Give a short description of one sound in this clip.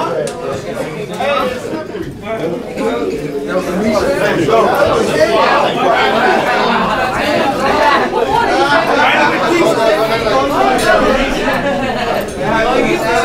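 A crowd of young men talk and shout over one another nearby.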